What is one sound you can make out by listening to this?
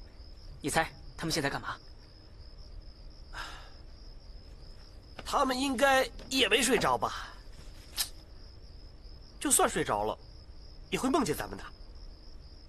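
A young man speaks in a low, calm voice.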